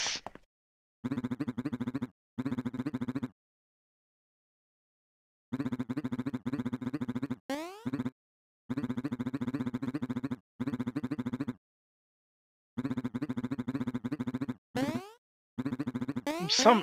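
Quick electronic blips chatter in bursts as game dialogue scrolls.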